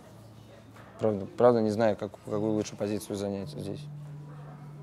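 A young man speaks calmly and close by, through a microphone.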